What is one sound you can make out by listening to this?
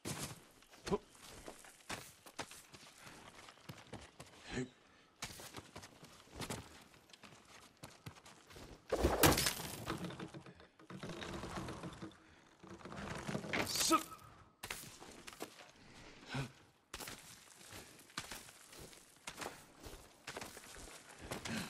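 Hands scrape and grip against rock while climbing.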